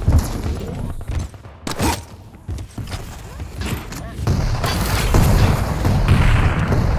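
Heavy footsteps thud on a stone floor in a game.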